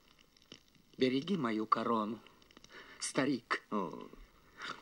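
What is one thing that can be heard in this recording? A man speaks animatedly, close by.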